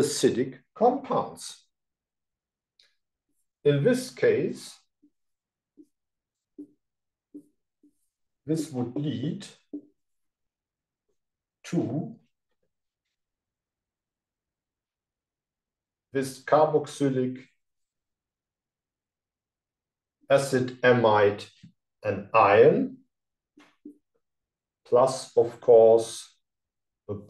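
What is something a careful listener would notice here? A middle-aged man speaks calmly in short phrases with pauses, close by.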